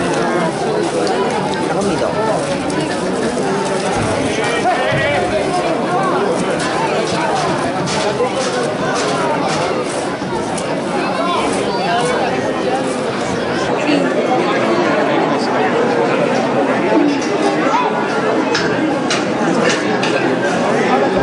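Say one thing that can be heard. A large outdoor crowd chatters and calls out steadily.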